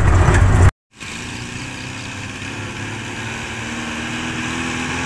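A small jeep engine approaches from a distance.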